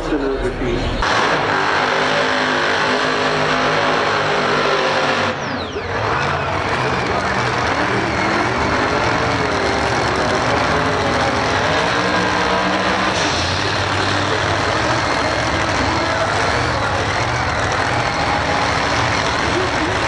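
A drag racing car's engine roars loudly at full throttle.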